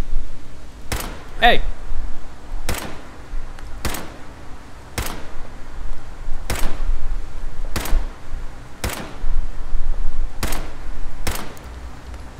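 Rifle shots ring out one after another at a steady pace.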